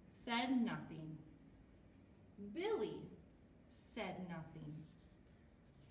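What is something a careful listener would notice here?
A young woman reads aloud expressively, close by.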